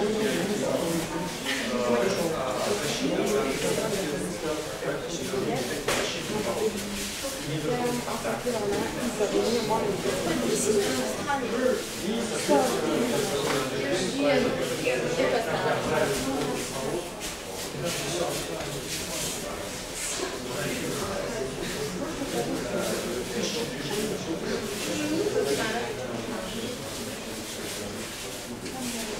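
A group of teenagers and adults chatter at once in a large echoing hall.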